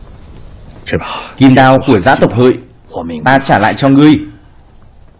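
A man speaks solemnly, close by.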